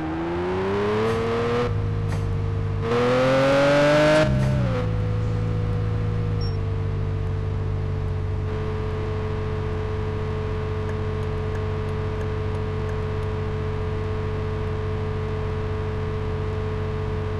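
A car engine revs up through the gears, then settles into a steady hum.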